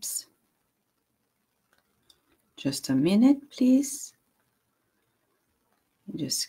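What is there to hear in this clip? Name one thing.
A middle-aged woman speaks calmly and close to a microphone, in short phrases with pauses.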